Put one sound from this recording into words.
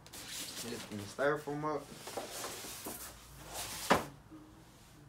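Cardboard and foam packaging scrape and rustle as a box is lifted off.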